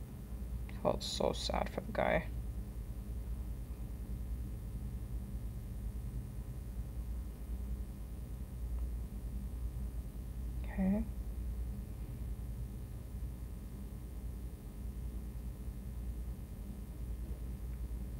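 Fingers rub and tap softly against a small glass jar.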